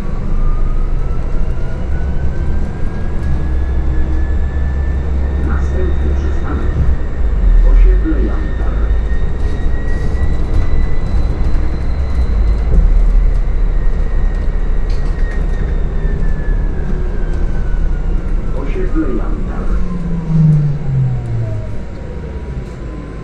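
A hybrid city bus drives along a road, its engine rumbling low, heard from inside.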